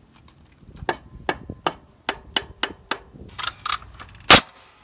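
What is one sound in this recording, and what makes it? A hammer taps on wood.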